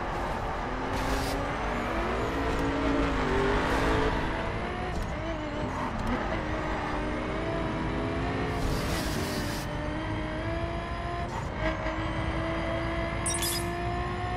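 A racing car engine roars and revs through the gears.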